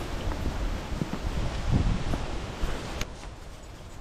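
Dogs' paws patter and scuffle on a muddy dirt path close by.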